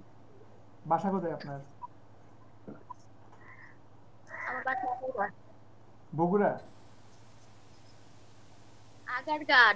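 A young man speaks in short bursts over an online call.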